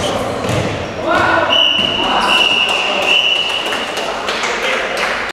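Young men shout to each other from a distance in a large echoing hall.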